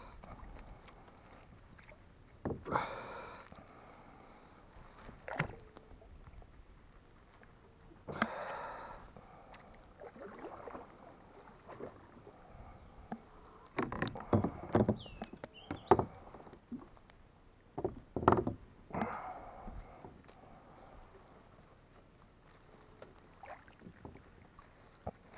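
Water splashes as a net is pulled from it.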